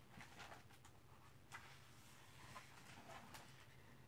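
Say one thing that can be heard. Pages of a book rustle and turn.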